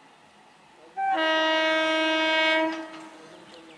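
A train horn blares loudly and steadily.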